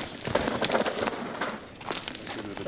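Bike tyres skid and crunch over loose dirt.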